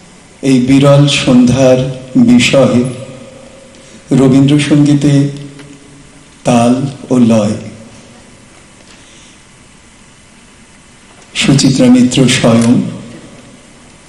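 A man speaks into a microphone in short bursts, heard through a loudspeaker in a hall.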